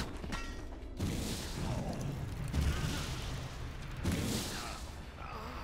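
A burst of flames whooshes and roars.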